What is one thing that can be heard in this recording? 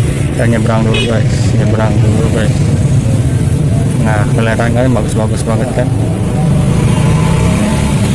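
A motorcycle engine runs close by.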